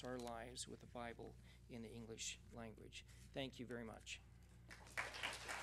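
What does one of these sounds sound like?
A middle-aged man speaks calmly into a microphone in a large hall.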